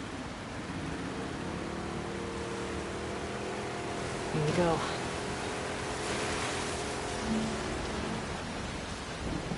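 A small boat's outboard motor hums steadily.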